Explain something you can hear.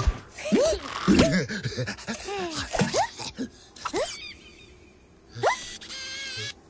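A cartoon dog character babbles excitedly in a high, squeaky voice.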